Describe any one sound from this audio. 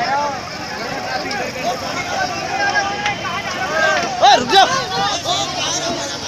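Men shout together loudly.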